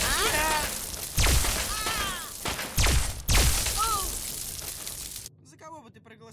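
A ray gun fires with loud crackling zaps.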